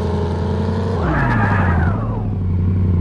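A truck's tyres screech as it swerves.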